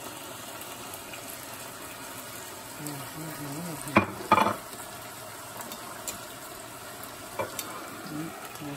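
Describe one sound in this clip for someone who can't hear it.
Meat sizzles softly in a hot pan.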